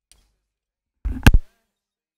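A metal casing snaps with a sharp click as it is pried apart.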